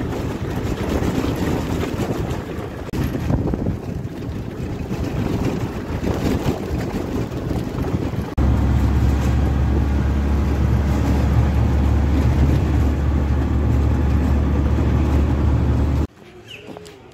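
A vehicle engine rumbles loudly and steadily.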